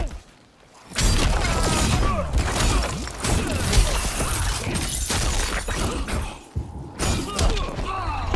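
Energy blasts whoosh and crackle in a video game fight.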